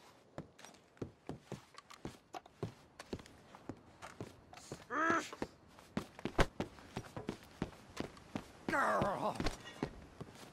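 Heavy footsteps thud on wooden planks.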